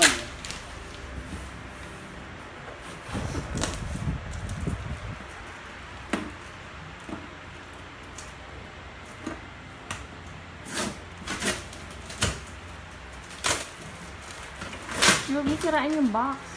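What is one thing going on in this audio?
A cardboard box scrapes and thumps as it is handled.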